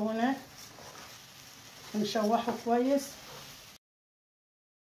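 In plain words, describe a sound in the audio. A spoon scrapes and stirs rice in a pan.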